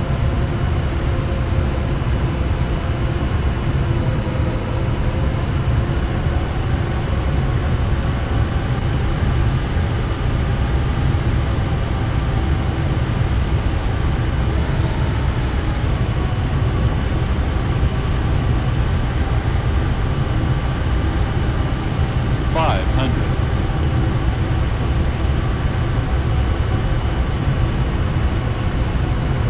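Jet engines roar and hum steadily.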